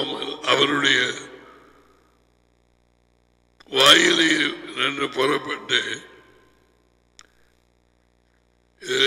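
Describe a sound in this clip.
A man speaks with animation into a headset microphone, close by.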